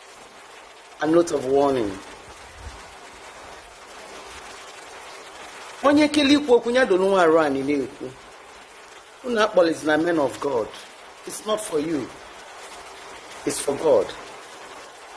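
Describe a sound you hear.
A woman speaks emotionally in short bursts, close to the microphone.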